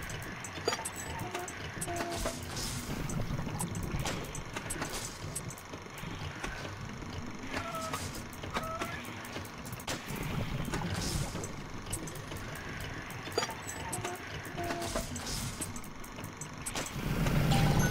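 Soft electronic clicks sound as pipe pieces are placed.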